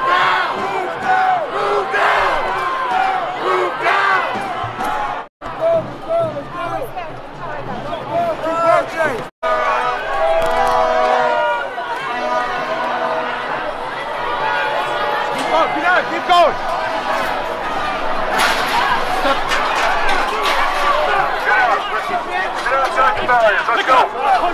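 A crowd of protesters chants and shouts outdoors in a busy street.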